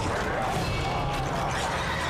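A man screams in agony.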